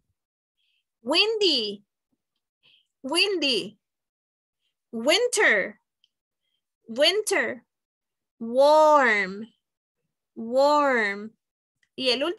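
A woman speaks slowly and clearly through an online call, pronouncing single words in short bursts with pauses.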